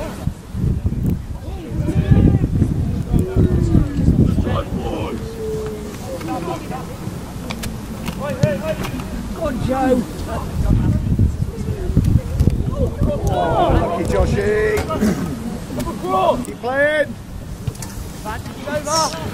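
Young players shout and call out to one another across an open field.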